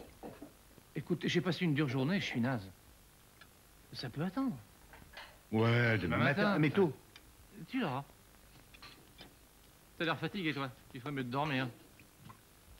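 A younger man talks with animation.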